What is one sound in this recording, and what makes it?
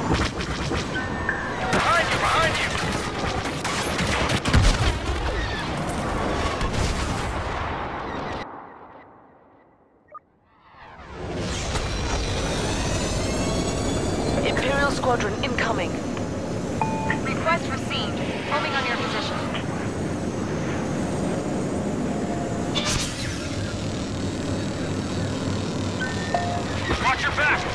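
A starfighter engine roars steadily.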